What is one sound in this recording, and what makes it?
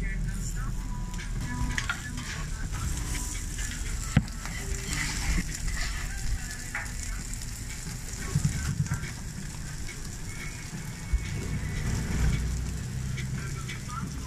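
Meat patties sizzle on a hot griddle.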